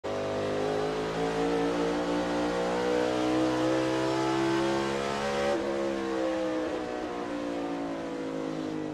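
A race car engine roars loudly at high, steady speed.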